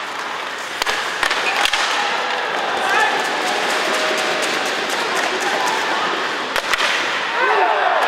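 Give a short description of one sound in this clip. Sticks clack sharply against a puck.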